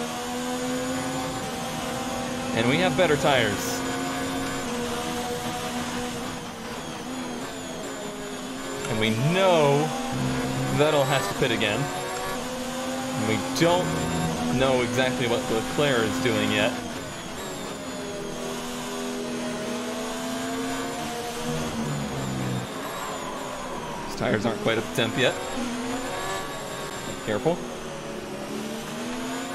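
A racing car engine roars steadily, its pitch rising and falling with gear changes.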